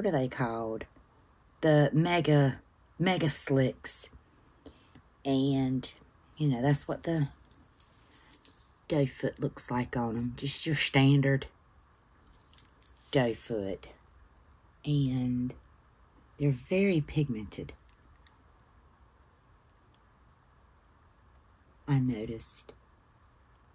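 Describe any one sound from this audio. A middle-aged woman talks calmly and close to a microphone.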